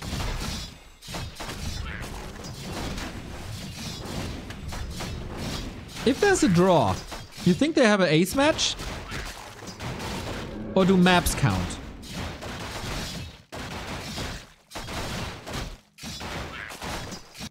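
Weapons clash and strike in a fast, busy fight.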